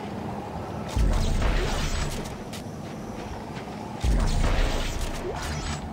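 A heavy weapon fires with a loud, booming blast.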